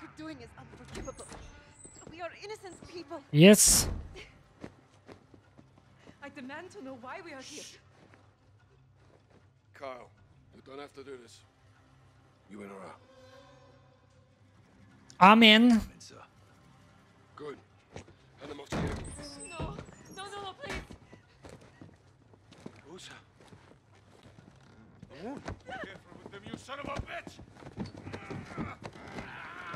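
A young man talks into a close microphone in a calm, casual way.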